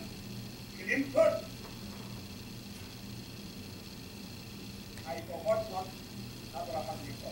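A man speaks forcefully in bursts, heard through a television speaker.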